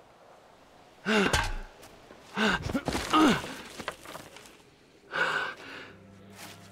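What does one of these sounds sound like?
A young woman exclaims in surprise close to a microphone.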